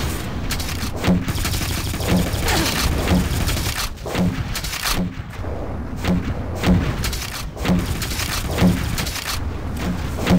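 Footsteps thud rhythmically on grass.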